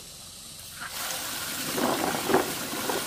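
Water gushes from a tap and splashes into a basin.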